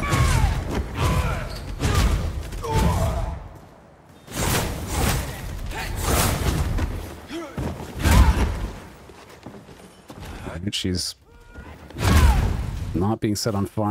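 Heavy weapon blows strike and clang repeatedly.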